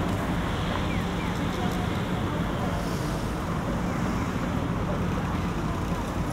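A van drives past.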